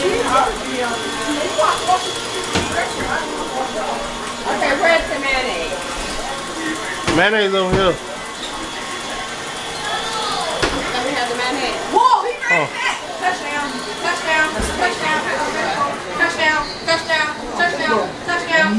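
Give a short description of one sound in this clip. Several women talk and laugh close by, with animation.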